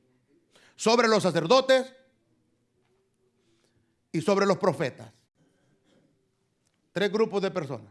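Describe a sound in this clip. A man speaks with animation through a microphone, in short bursts.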